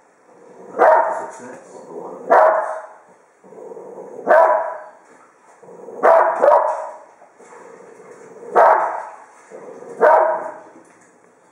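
A small dog barks loudly and repeatedly.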